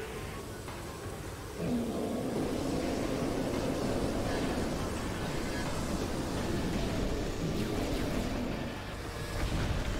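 Rocks crash and rumble as they fall.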